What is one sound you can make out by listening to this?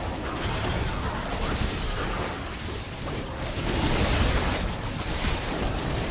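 Spell blasts and impacts crash and whoosh during a battle in a game.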